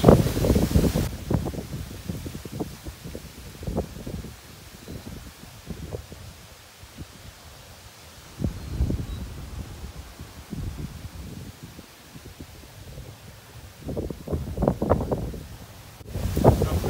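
Wind blows outdoors in gusty bursts.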